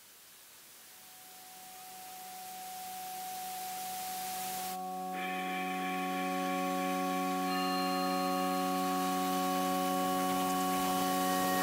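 A glowing synthesised chord swells slowly and grows louder.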